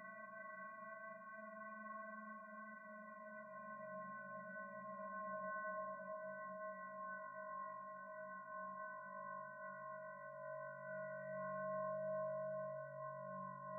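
A synthesizer plays a steady, droning electronic chord.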